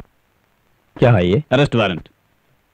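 A man replies in a raised voice.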